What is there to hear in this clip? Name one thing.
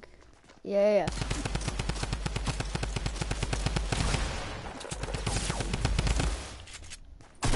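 Rapid gunshots fire in quick bursts.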